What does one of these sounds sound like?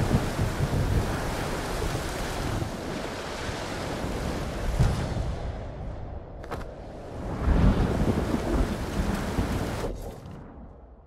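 Waves wash against a rocky shore.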